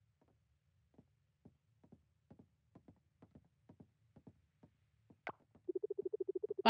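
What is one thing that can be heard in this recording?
Footsteps tap lightly on a wooden floor.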